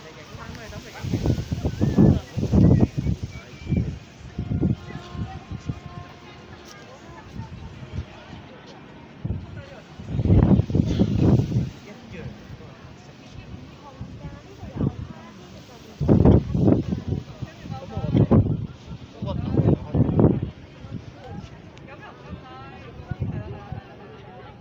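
Wind gusts buffet loudly in the open air.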